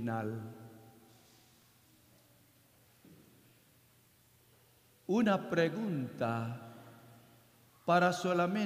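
A man speaks slowly and calmly into a microphone in a large echoing hall.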